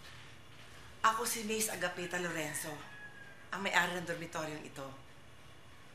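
An older woman speaks loudly and firmly nearby.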